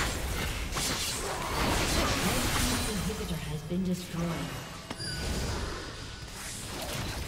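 Spell blasts and weapon hits crash and whoosh in a fast battle.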